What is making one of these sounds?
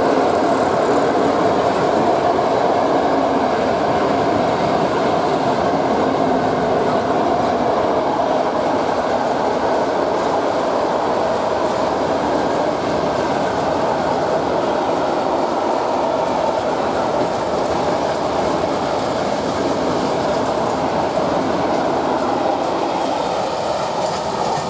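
A long freight train rumbles and clatters steadily past nearby.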